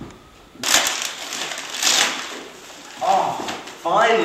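Wrapping paper rustles and tears loudly.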